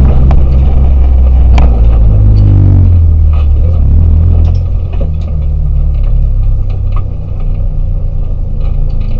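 A rally car engine roars loudly from inside the cabin.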